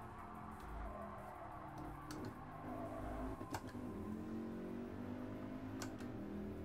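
A racing car engine roars at high revs, shifting gears up and down.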